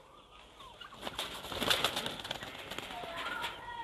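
A pigeon flaps its wings in a rapid flurry.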